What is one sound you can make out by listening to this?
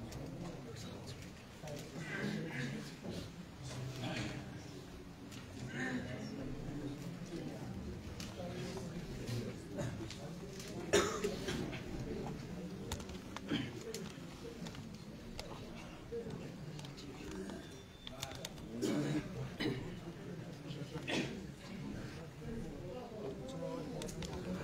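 Men murmur and talk quietly in a room with some echo.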